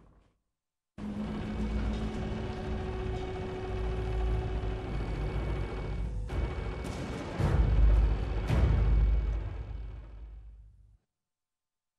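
A cable car's machinery rumbles and creaks as it moves along its cable.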